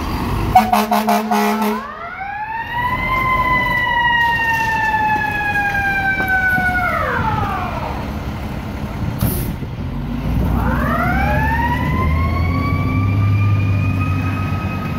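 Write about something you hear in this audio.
A fire engine's diesel engine rumbles as the truck pulls away.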